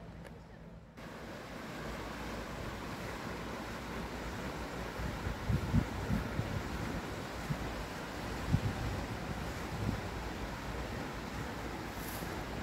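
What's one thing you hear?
Water rushes steadily over a small weir.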